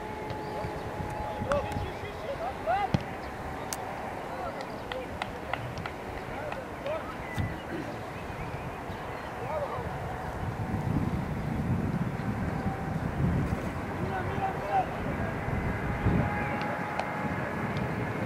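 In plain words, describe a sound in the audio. Teenage football players shout to each other across an open outdoor pitch.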